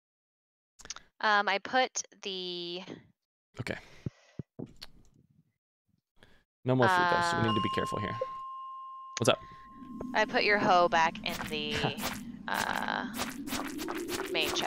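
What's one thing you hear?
A young woman talks through a microphone on an online call.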